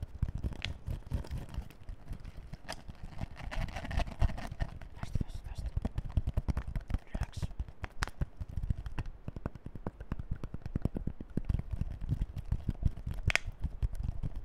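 Fingers tap on a plastic bottle.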